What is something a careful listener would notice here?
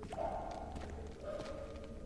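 Footsteps scuff slowly on a stone floor.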